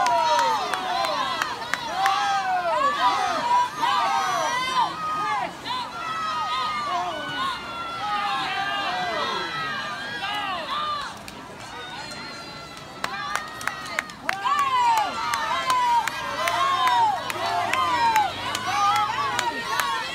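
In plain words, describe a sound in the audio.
Swimmers splash through the water.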